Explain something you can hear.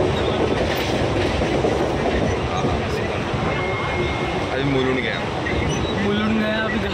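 A train rumbles along on its tracks.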